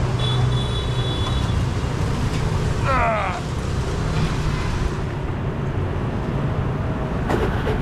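A motorbike engine rumbles steadily close by.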